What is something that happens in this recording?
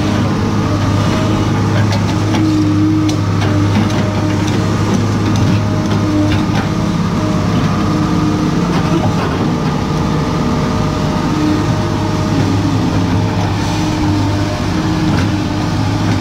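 A metal excavator bucket scrapes and digs into loose dirt.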